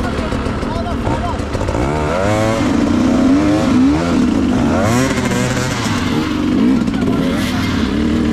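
A dirt bike engine idles and revs sharply up and down close by.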